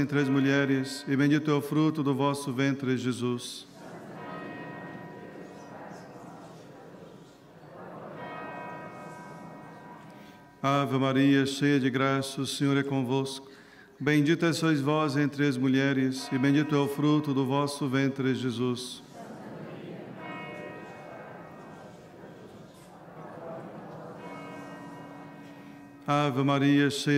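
A man chants prayers through a microphone.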